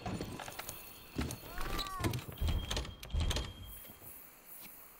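Game menu clicks and chimes sound.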